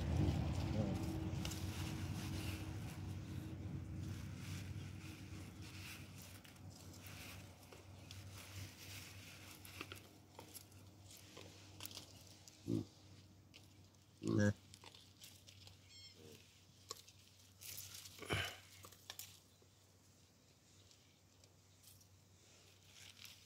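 Baboons pad softly over dry dirt.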